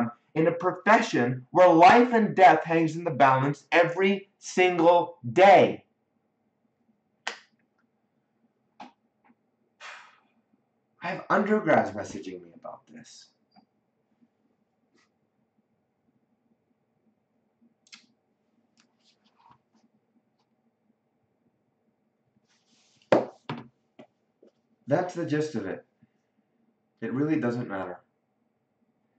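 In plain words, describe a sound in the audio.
A young man speaks calmly and expressively close to a microphone, with pauses.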